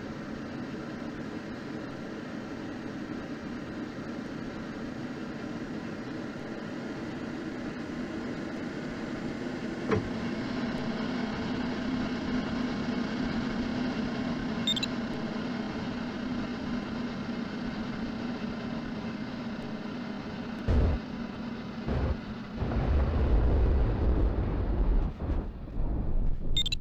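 Wind rushes steadily past a glider cockpit.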